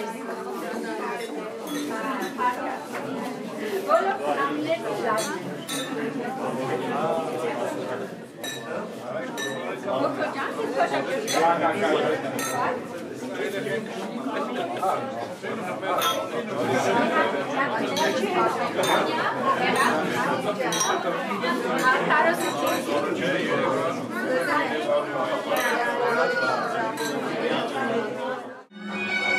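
A crowd of men and women chatter and laugh all around.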